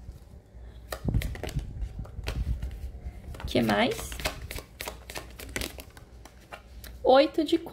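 A deck of playing cards is shuffled with quick, crisp flicks.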